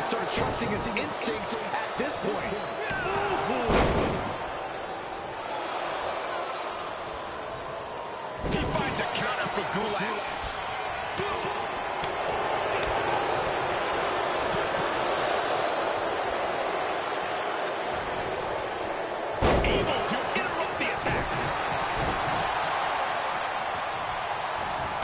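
A large crowd cheers and roars throughout in a big arena.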